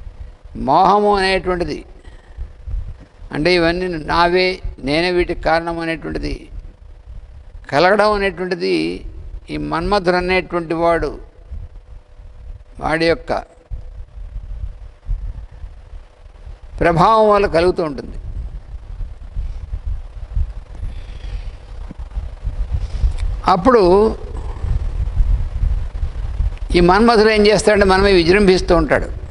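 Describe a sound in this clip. An elderly man speaks slowly through a microphone, in short phrases with long pauses.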